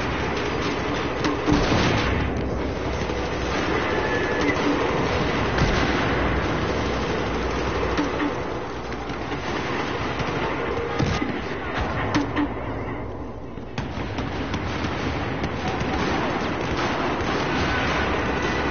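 Rapid gunfire cracks amid a noisy battle.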